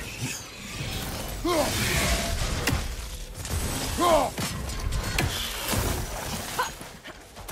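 A heavy axe whooshes and strikes with loud crackling bursts.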